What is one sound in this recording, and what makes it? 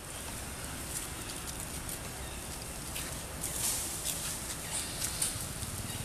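A monkey chews food with soft crunching clicks.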